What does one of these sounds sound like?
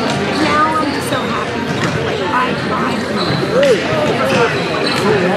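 Hockey sticks clack against a ball and each other.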